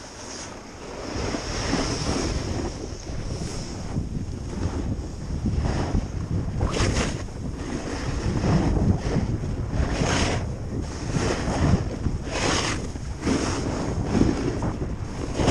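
A snowboard scrapes and hisses over packed snow.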